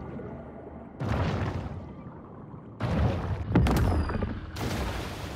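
Water splashes and churns loudly in sudden bursts.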